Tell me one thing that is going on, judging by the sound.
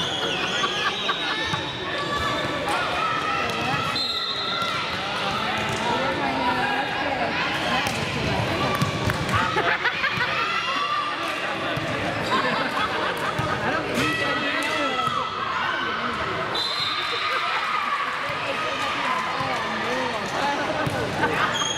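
Young girls chatter and call out in a large echoing hall.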